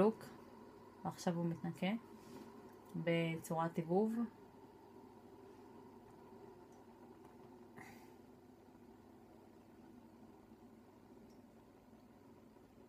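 A coffee machine hums steadily and quietly.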